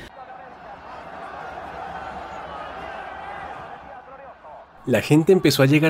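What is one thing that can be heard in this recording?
A large crowd cheers in a stadium.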